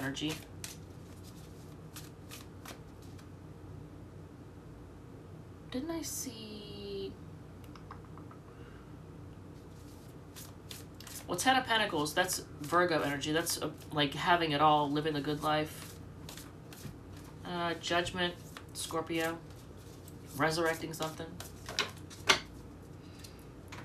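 Playing cards shuffle and flick softly.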